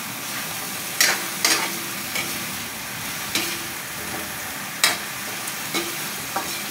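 A metal spatula clanks and scrapes against a steel wok.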